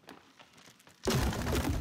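An arrow thuds into wood.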